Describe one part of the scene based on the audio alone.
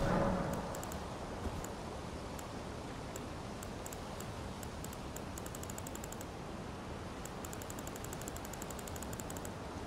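A game menu ticks with soft, quick clicks as it scrolls.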